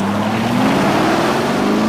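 Tyres skid and spray gravel.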